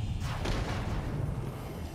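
A magic blast bursts with a loud crackle.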